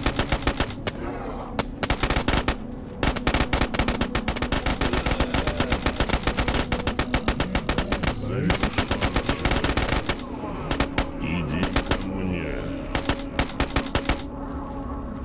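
A machine gun fires in rapid bursts close by.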